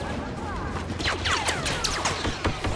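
Laser blasters fire in rapid zapping bursts.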